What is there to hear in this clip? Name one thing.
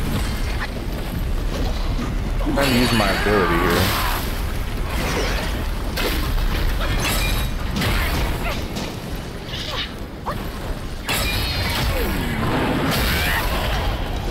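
Heavy blows thud and clash in a fight.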